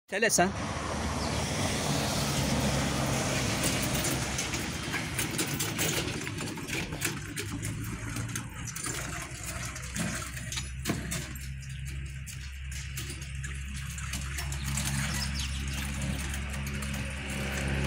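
A hand cart's wheels rumble over rough pavement.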